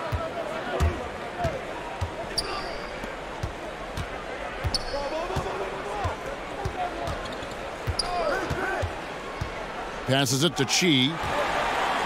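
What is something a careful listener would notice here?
Sneakers squeak on a hardwood floor.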